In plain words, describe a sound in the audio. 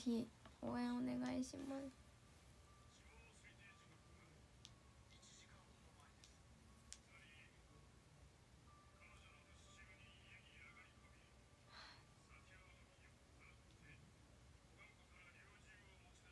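A young woman talks calmly, close to the microphone.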